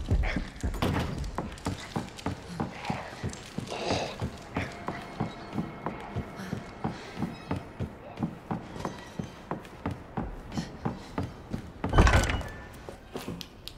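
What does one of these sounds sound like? Footsteps thud quickly on wooden stairs and floorboards.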